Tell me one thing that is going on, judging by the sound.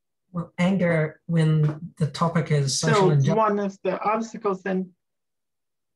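A middle-aged adult talks with animation over an online call.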